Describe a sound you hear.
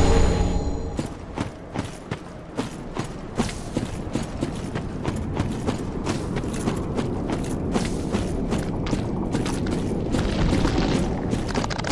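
Armoured footsteps crunch quickly over leaves and dirt.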